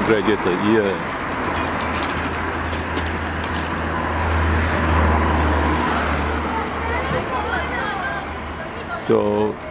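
A delivery truck engine rumbles close by.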